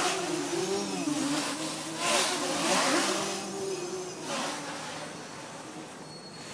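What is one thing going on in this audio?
A small drone's propellers buzz and whine overhead, shifting in pitch.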